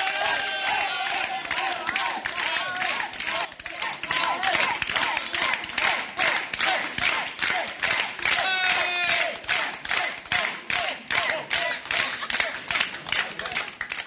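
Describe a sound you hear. A crowd of men and women cheers and shouts joyfully close by.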